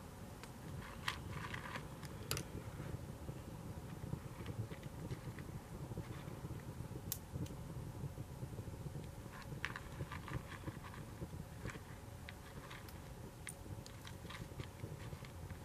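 Food wrapping crinkles and rustles.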